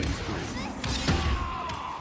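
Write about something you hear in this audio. Game sound effects chime when an enemy is defeated.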